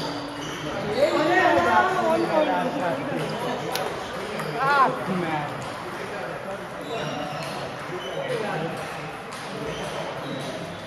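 Ping pong balls click on tables and paddles.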